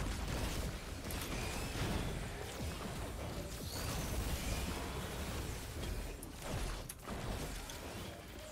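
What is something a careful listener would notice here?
Game weapons fire and zap in rapid bursts.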